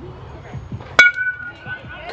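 A metal bat cracks sharply against a ball.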